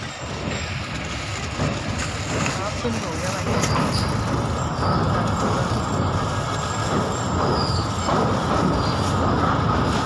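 Train wheels rattle and clatter louder over a bridge.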